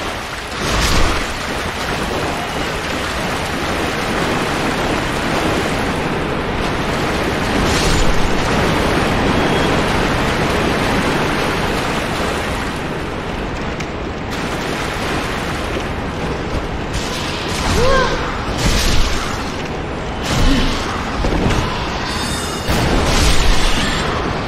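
A sword strikes with heavy thuds.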